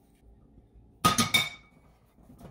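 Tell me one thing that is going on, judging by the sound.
Dishes clatter and clink against each other.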